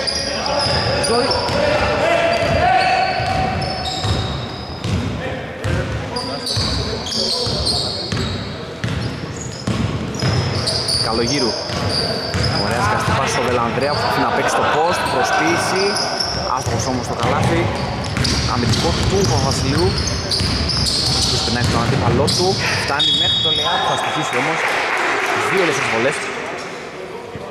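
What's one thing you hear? Sneakers squeak sharply on a hard wooden floor in a large echoing hall.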